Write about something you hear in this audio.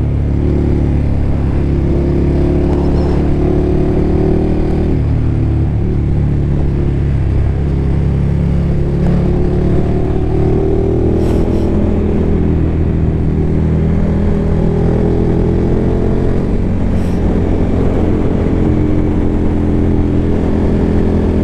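A motorcycle engine hums steadily and shifts in pitch as the bike rides along.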